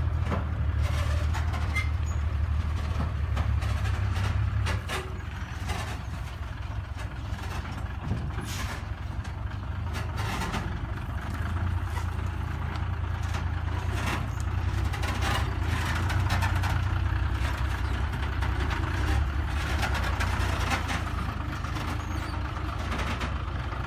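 Tyres crunch over loose dirt.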